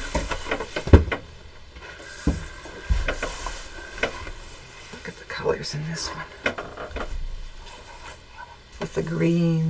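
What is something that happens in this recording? Cloth rustles as it is smoothed by hand.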